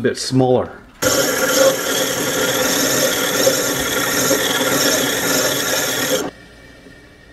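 A benchtop drill press runs with a steady whine.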